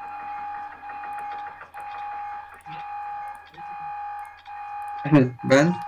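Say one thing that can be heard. Game buttons click as they are pressed.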